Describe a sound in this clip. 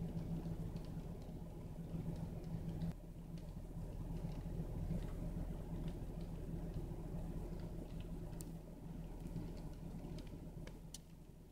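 A car engine runs, heard from inside the car.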